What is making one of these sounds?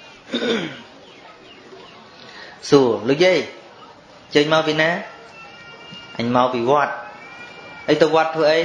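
A man sings in long, drawn-out phrases, heard through a microphone.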